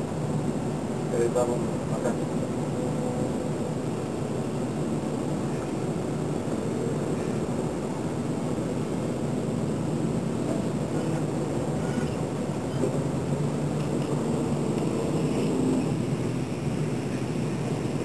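Many motorbike engines idle and rumble steadily outdoors.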